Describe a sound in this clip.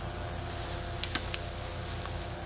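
Dry branches rustle and crackle close by.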